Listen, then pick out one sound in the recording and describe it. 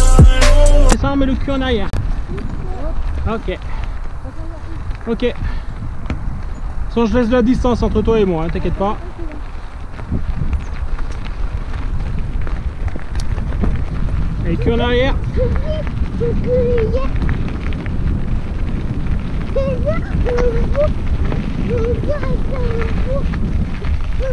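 Bicycle tyres roll and crunch over a bumpy dirt track.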